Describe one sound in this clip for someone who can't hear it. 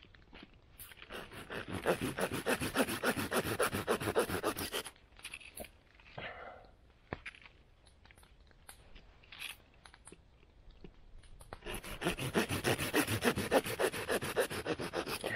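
A hand saw cuts through wood with quick rhythmic strokes.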